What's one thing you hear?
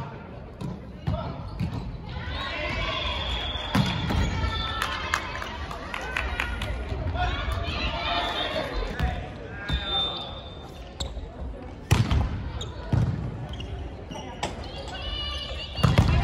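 Several men and women call out and talk loudly in a large echoing hall.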